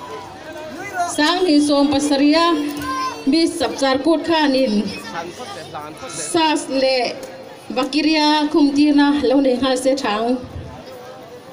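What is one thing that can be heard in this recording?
A group of young women sing together through a loudspeaker outdoors.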